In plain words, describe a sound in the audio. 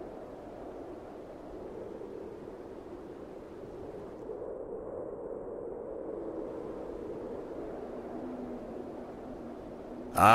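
A magic spell hums and shimmers steadily.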